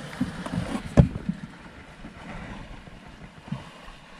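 A fish flaps and thumps against the floor of a boat.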